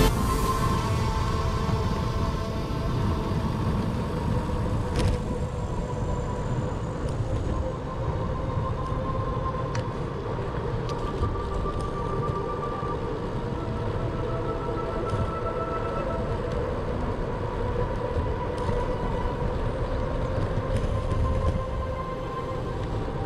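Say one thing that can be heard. Bicycle tyres hum steadily on a paved path.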